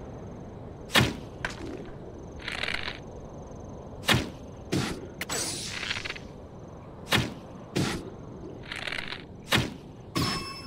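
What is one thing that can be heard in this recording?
A bowstring snaps as arrows are shot.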